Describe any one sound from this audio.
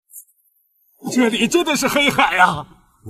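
A cartoon man speaks with animated surprise.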